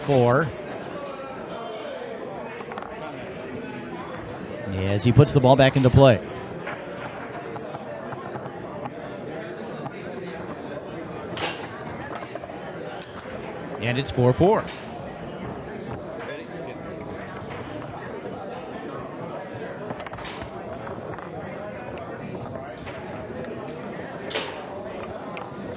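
A crowd murmurs indoors.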